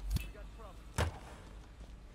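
A heavy lid slams shut with a dull thud.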